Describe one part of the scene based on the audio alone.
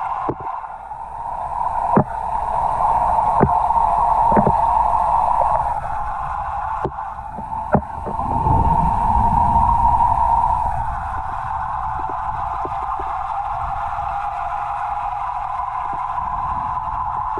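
Water hums steadily, heard from underwater.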